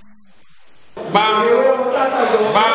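An elderly man speaks up close into a microphone.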